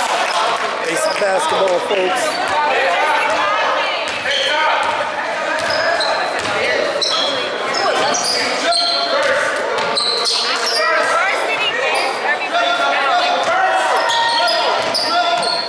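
Spectators talk and call out across the hall.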